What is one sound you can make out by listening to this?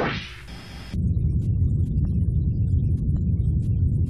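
Guns fire in a rapid, rumbling stream.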